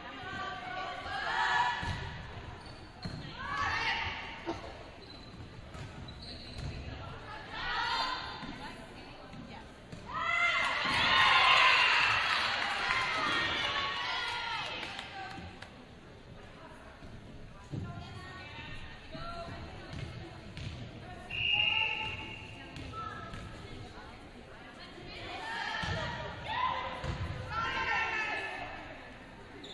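Young women players shout calls across the court.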